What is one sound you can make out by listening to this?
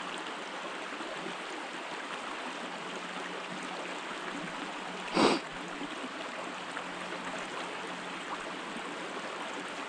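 A shallow stream gurgles steadily over rocks outdoors.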